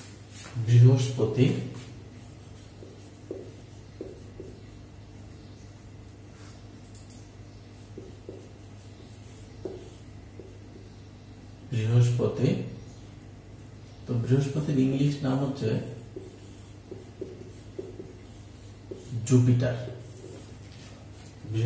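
A man speaks calmly in short bursts close by.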